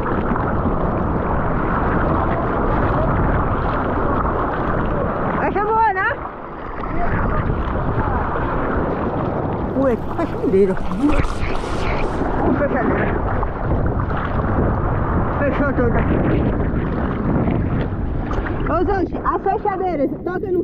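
Water sloshes and splashes against a board close by.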